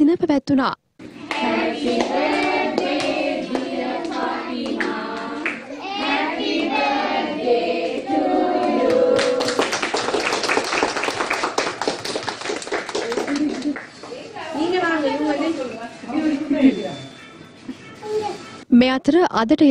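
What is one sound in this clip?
Children sing together nearby.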